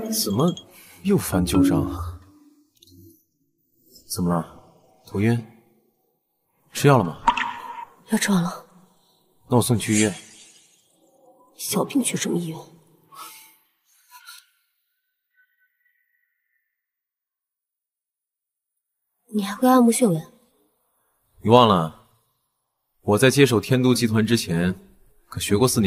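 A young man asks questions with concern close by.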